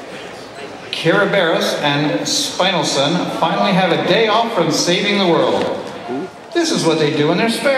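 A man speaks loudly and with animation in a large hall.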